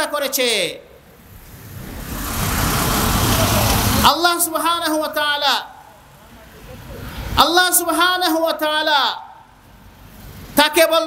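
A man preaches with animation through a microphone and loudspeakers.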